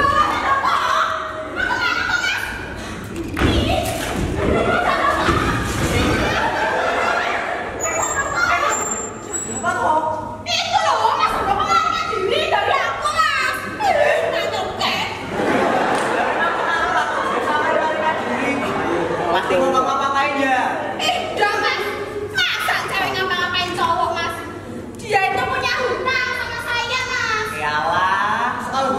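A woman speaks loudly with animation in a large echoing hall.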